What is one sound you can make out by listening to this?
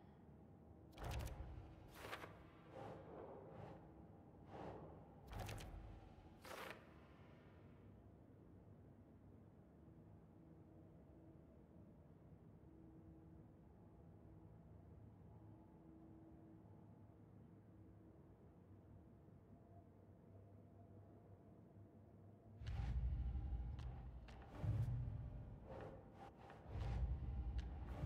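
Short menu clicks and whooshes sound now and then.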